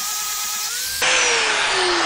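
An angle grinder whirs loudly off the metal, its pitch slowly dropping.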